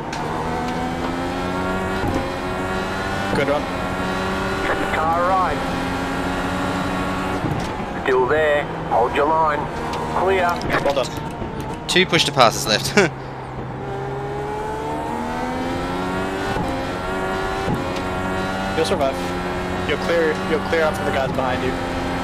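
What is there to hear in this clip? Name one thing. A racing car engine roars at high revs, climbing in pitch and dropping sharply with each gear change.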